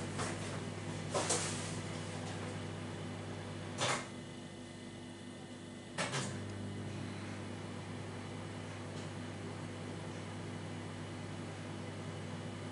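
A coffee machine hums steadily.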